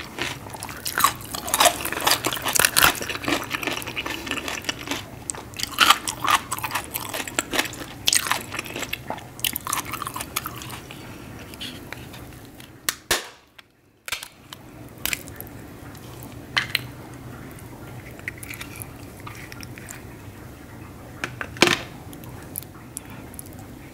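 Hands crack and snap shellfish shells up close.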